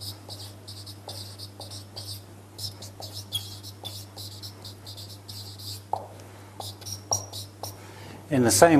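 A marker squeaks and scratches across a whiteboard.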